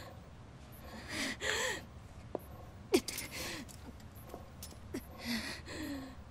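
A young woman speaks quietly and with strain.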